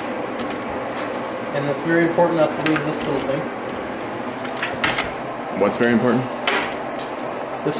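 A cordless drill whirs as it drives bolts.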